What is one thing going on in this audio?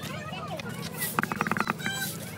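Spice shakes out of a container onto fruit with a rattle.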